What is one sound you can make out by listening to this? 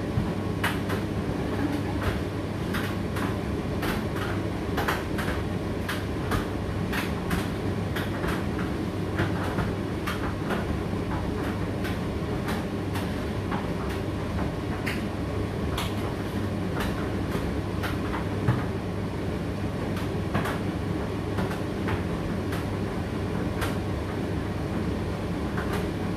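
Clothes tumble and knock inside a tumble dryer drum.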